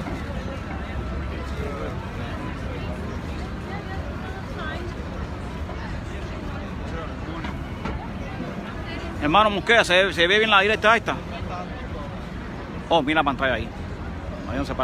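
A crowd murmurs outdoors in a busy street.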